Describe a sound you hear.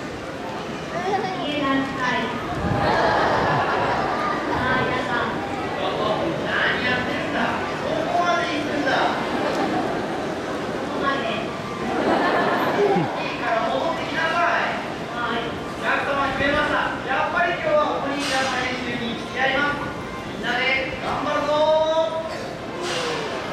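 A woman speaks with animation through a loudspeaker in a large open space.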